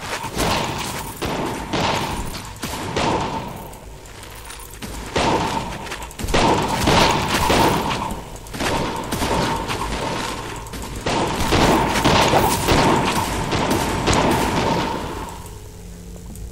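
Weapons strike and clash in a rapid fight with monsters.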